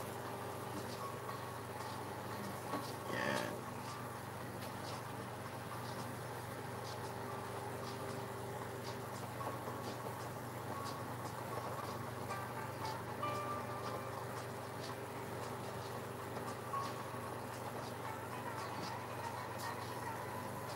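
A paintbrush dabs and scratches softly on canvas.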